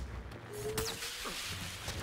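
Crackling electricity zaps.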